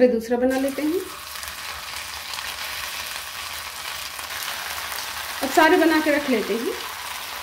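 Food sizzles and crackles as it fries in hot oil.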